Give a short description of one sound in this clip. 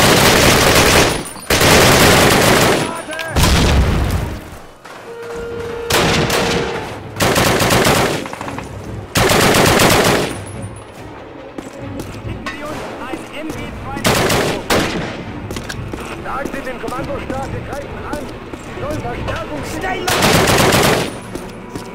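Rifle shots ring out in loud bursts.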